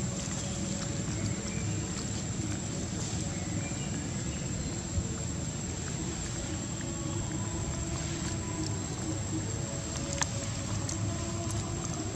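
Dry leaves rustle and crackle as a baby monkey picks through them.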